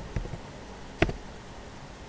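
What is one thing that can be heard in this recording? A mouse button clicks.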